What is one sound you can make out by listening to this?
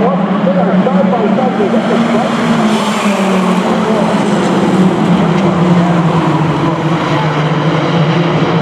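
A pack of mini stock race cars drones around an oval track.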